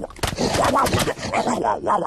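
A cartoon lion groans loudly.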